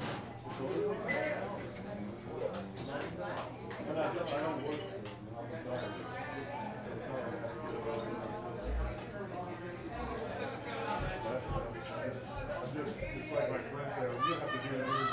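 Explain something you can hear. Electric guitars play together.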